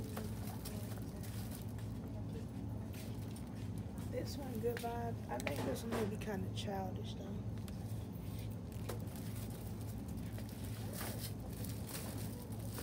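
Items clatter softly as a woman handles goods on a shelf.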